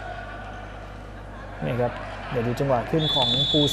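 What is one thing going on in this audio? A volleyball is struck by hand in an echoing indoor hall.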